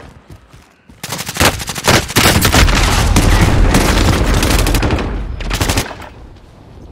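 Gunshots ring out in rapid bursts.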